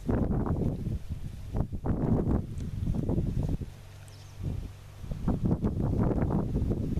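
Wind gusts and buffets loudly in open country.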